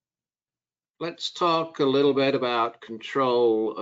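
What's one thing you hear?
A middle-aged man speaks calmly into a microphone, as over an online call.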